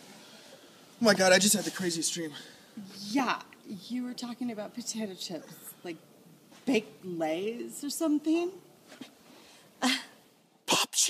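A woman laughs and talks with animation close by.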